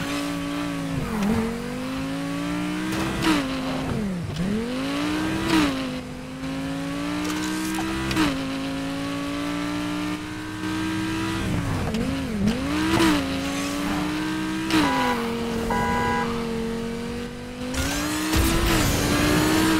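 A sports car engine roars steadily, its pitch rising and dropping sharply as the gears shift.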